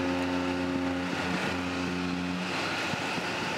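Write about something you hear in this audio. A ship's horn sounds a deep, steady blast, then stops.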